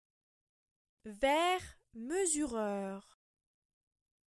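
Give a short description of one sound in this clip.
A woman pronounces a short phrase slowly and clearly.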